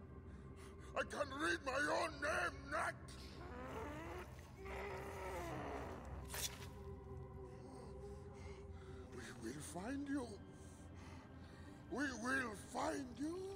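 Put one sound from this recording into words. A man shouts angrily and threateningly.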